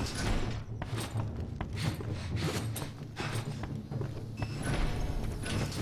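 Footsteps thud steadily on a wooden floor.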